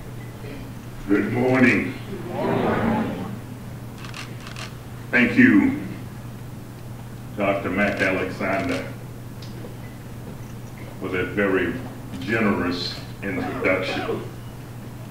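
An elderly man speaks slowly and calmly through a microphone in a large room.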